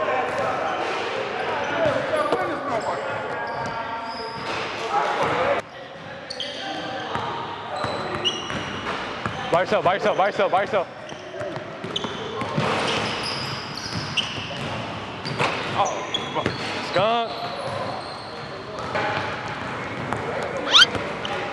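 A ball bounces on a wooden floor.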